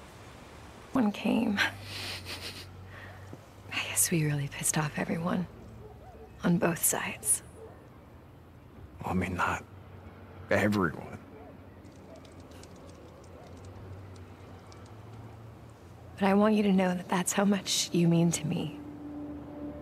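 A young woman speaks softly and warmly.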